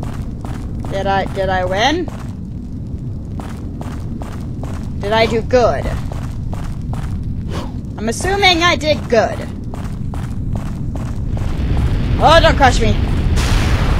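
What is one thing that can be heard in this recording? A young woman speaks briefly through a headset microphone.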